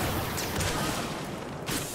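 A blaster rifle fires in a video game.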